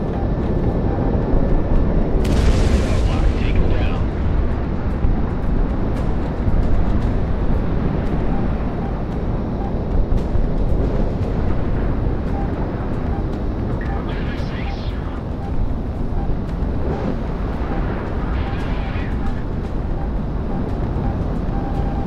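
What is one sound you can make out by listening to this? A warning tone beeps in a cockpit.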